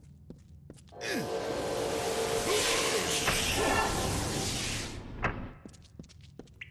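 Magical energy crackles and whooshes loudly.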